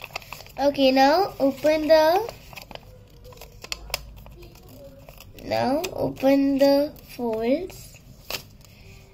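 Paper rustles and crinkles as it is folded.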